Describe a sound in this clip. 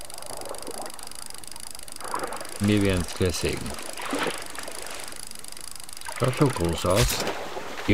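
A fish splashes and thrashes in water.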